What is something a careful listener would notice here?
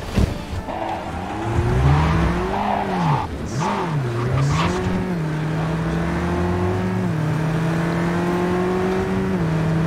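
A car engine revs up and down as the car accelerates.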